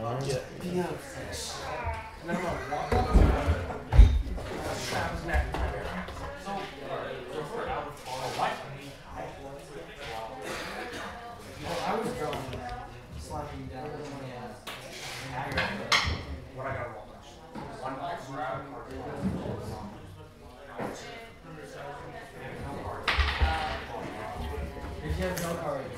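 Plastic game pieces click on a tabletop.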